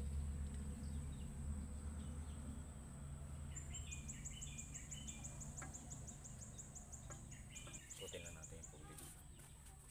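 Metal tools click and tap against an engine.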